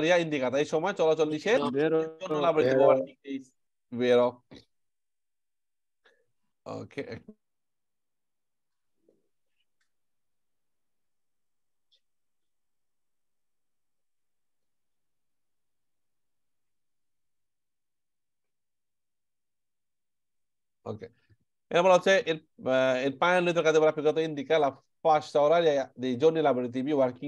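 A young man speaks calmly and steadily through an online call.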